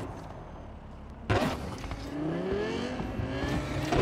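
Tyres screech as a car skids through a turn.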